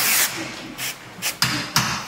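An aerosol can sprays with a steady hiss.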